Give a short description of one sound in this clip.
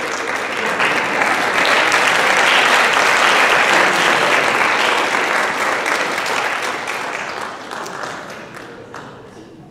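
An audience cheers and laughs loudly in a large hall.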